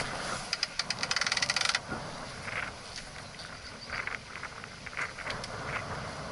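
A sail flaps and rustles in the wind.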